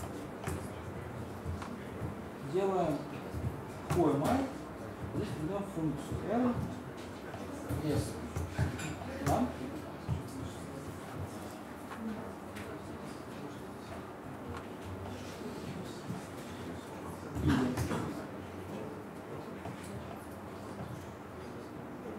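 Laptop keys click as a young man types.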